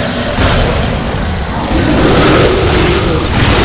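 Blades slash and strike in rapid combat.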